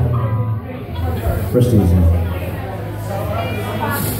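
A man sings into a microphone over a loud band.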